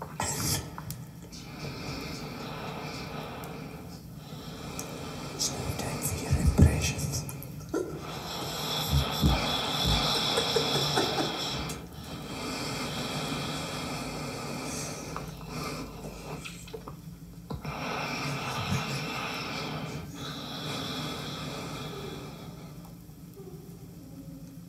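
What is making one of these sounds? Music plays from a record turntable.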